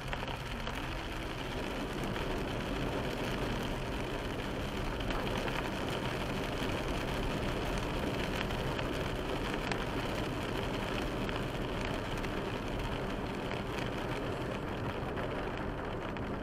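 Windscreen wipers swish across the glass.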